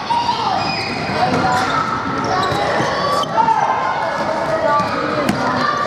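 A ball bounces on the hard floor.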